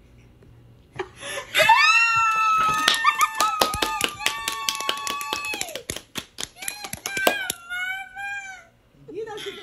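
A young man screams with delight close to a microphone.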